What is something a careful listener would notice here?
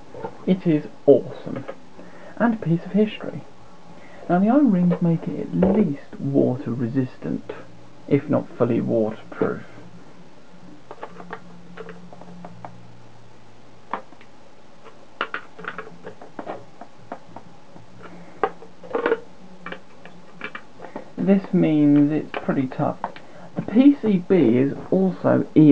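A plastic case clicks and rattles in a hand.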